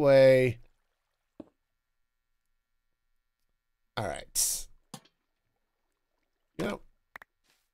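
A man speaks with animation, close to a microphone, in short bursts.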